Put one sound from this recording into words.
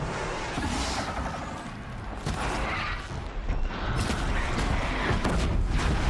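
A bowstring twangs as arrows are loosed.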